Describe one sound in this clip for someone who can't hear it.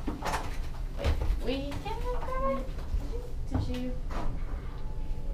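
A door swings open with a clunk.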